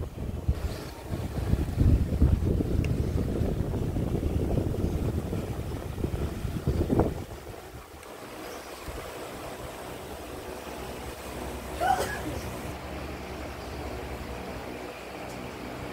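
A small dog breathes softly in its sleep.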